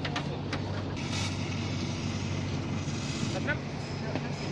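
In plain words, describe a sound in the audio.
A fire extinguisher hisses as it sprays.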